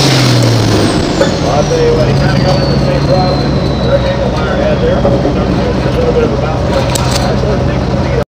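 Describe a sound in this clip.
A tractor's engine settles into a steady, lower idle.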